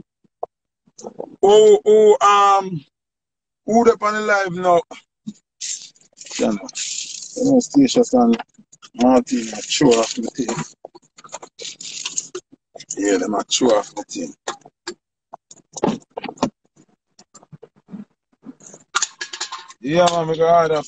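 A young man talks with animation close to a phone microphone.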